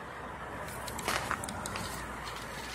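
A boot crunches on packed snow.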